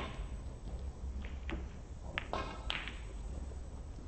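Snooker balls click against each other.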